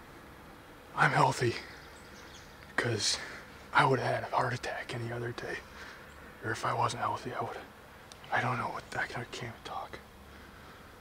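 A young man talks quietly and closely in short bursts.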